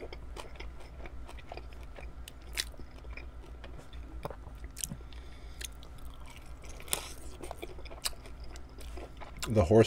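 A man sucks meat off a chicken wing bone close to a microphone.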